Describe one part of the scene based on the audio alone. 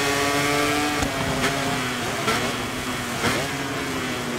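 A motorcycle engine pops sharply as it shifts down while braking.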